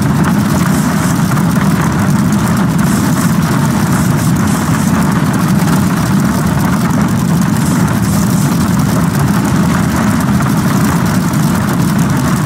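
Rain patters steadily on a windshield.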